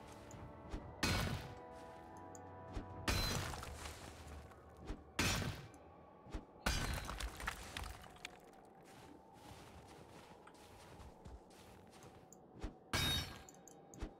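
A pickaxe strikes rock with sharp clanks.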